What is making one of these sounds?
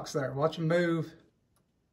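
A button clicks on a record player.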